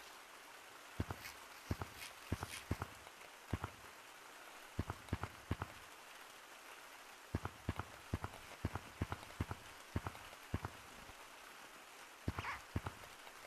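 Buttons click sharply in quick bursts.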